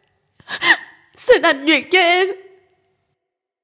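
A young woman speaks in a trembling, tearful voice close by.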